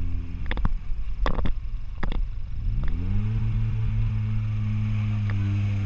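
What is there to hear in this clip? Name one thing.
Water splashes as a vehicle drives through a stream.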